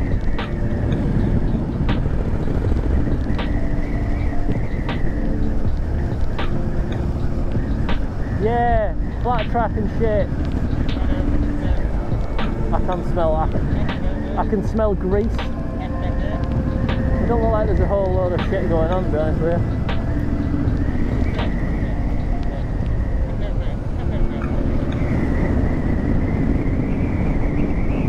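Wind roars loudly against the rider.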